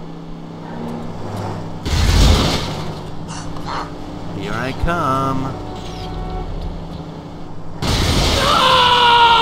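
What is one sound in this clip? A sports car engine hums steadily as the car drives.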